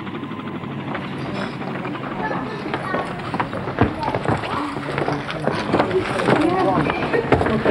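A crowd of older men and women chatters outdoors.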